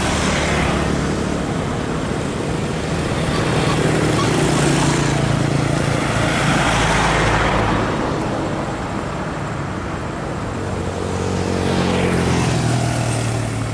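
A bus engine hums as it drives ahead on the road.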